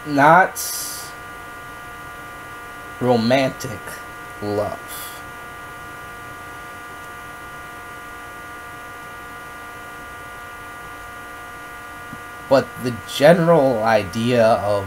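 A young man speaks close by in short, lively bursts.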